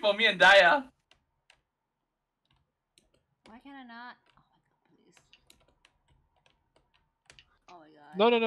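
A young woman talks with animation into a microphone, in short bursts.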